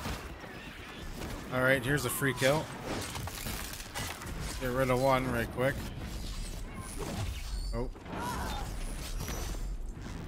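Metal creatures screech and growl.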